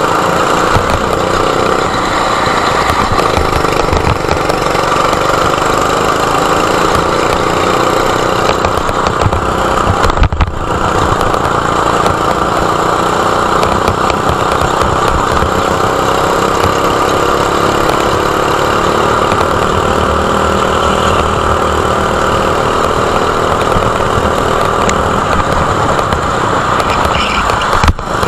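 A go-kart engine buzzes loudly up close, its pitch rising and falling.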